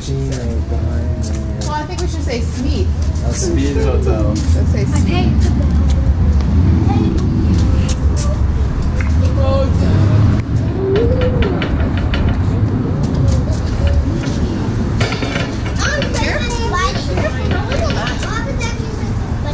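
Young children talk and chatter close by outdoors.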